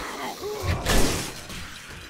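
A zombie growls and groans close by.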